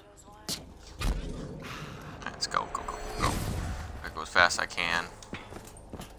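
A glowing portal roars and whooshes.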